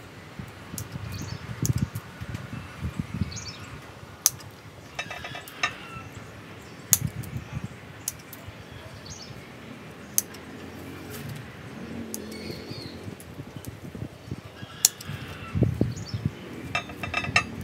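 Pruning shears snip twigs with sharp clicks.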